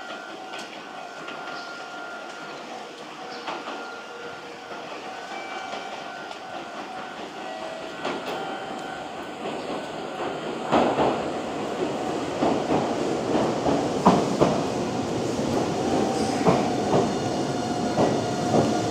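Train wheels clack and squeal over the rails.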